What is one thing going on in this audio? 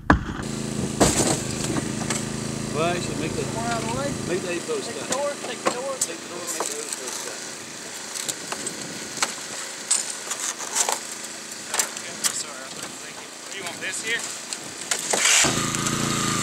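Metal creaks and pops as a car roof is cut.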